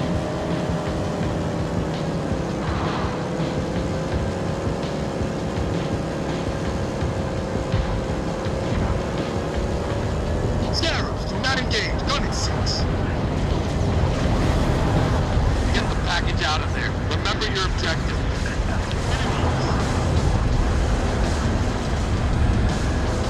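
A game vehicle's engine hums steadily.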